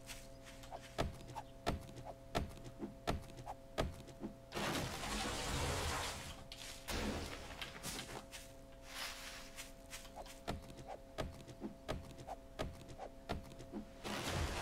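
An axe chops into wood with sharp, repeated knocks.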